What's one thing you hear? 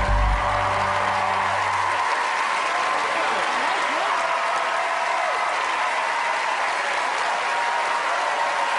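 A large crowd claps and applauds.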